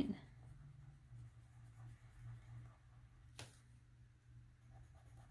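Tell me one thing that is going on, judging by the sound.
A marker squeaks softly as it colours on paper.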